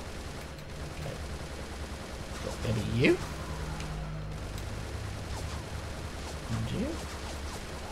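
A gun fires repeated shots.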